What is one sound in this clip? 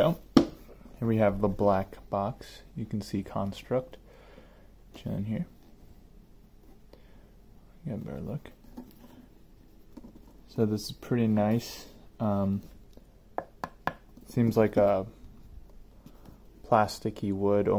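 A hard box lid scrapes and taps as it is handled.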